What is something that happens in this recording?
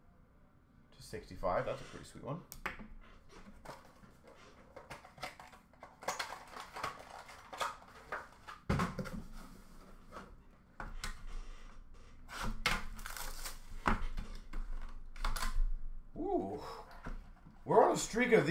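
Hands rustle and tap plastic and cardboard packs.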